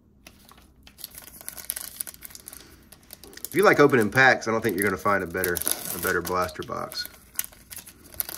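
A foil wrapper crinkles and tears open.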